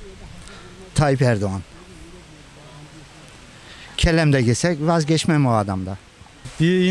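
A middle-aged man speaks calmly into a microphone up close.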